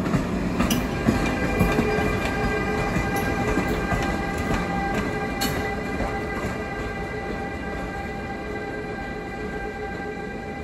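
A locomotive's motors whine steadily.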